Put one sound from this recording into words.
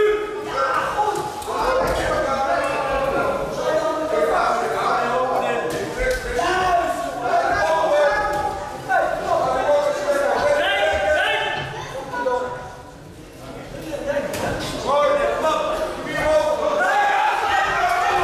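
Gloved punches and kicks land with dull thuds.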